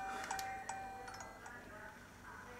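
A handheld game console plays a short, bright electronic jingle.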